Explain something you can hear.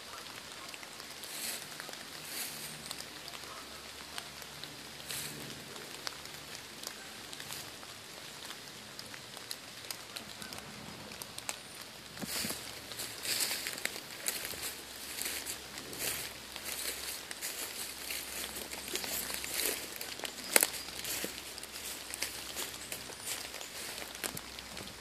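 Footsteps crunch through dry fallen leaves.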